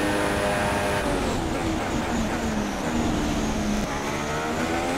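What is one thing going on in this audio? A Formula One car engine drops in pitch as the car brakes and shifts down.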